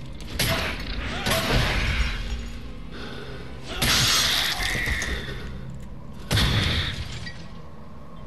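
Blades slash and strike heavily in a fight.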